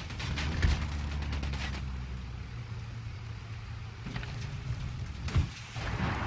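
A vehicle engine rumbles.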